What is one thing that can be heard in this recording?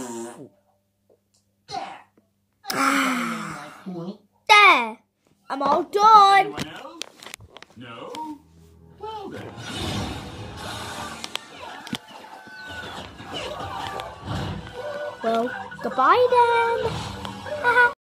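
A young boy talks and shouts playfully close to the microphone.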